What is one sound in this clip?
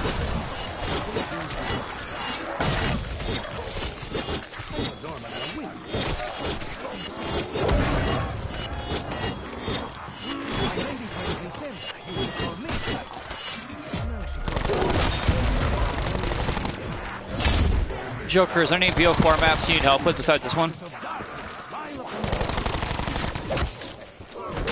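Zombies growl and groan.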